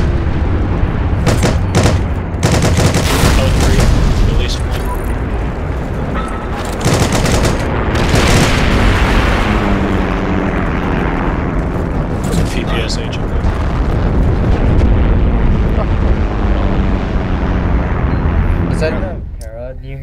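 A tank engine rumbles close by.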